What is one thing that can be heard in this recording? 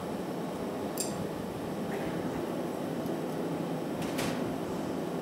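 A metal tool clicks against glass.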